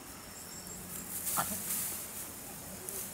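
Grass rustles as a chimpanzee scrambles across the ground.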